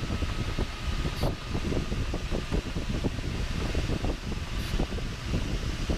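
Wind rushes and buffets loudly against a glider's canopy.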